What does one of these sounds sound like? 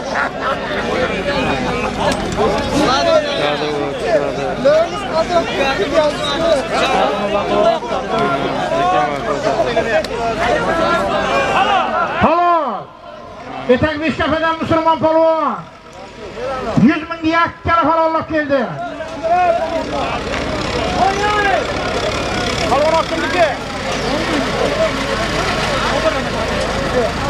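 A large crowd of men shouts and chatters outdoors.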